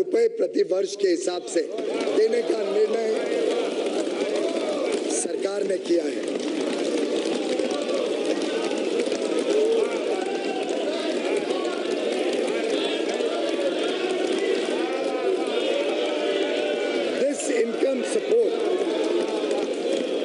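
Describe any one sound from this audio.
A crowd of men murmurs and calls out in the background.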